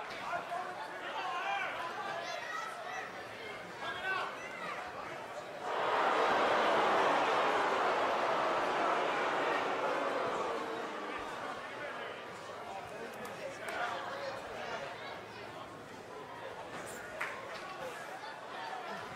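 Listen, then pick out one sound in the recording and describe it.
A large crowd cheers and roars in a big echoing arena, swelling suddenly and then slowly easing off.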